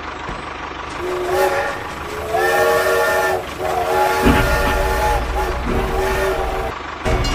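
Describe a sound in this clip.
A toy train toots its horn.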